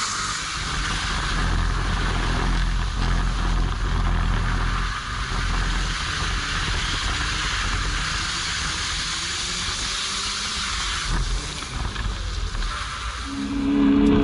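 Tyres hum on the road as a car drives along.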